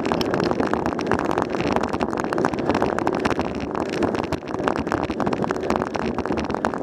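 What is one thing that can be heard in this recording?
Tyres roll steadily over a paved road with a constant rattling rumble.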